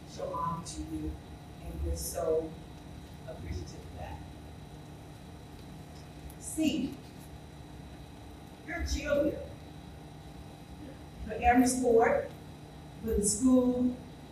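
A woman speaks with animation into a microphone in a large hall, with pauses between phrases.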